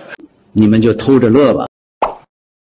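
A middle-aged man speaks clearly into a microphone.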